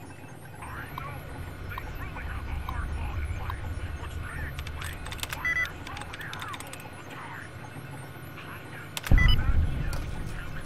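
A computer terminal chirps and beeps as text prints out.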